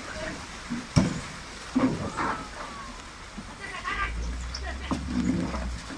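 A wooden boat knocks against stone.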